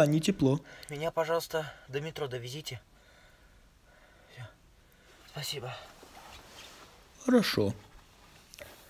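A young man talks casually up close.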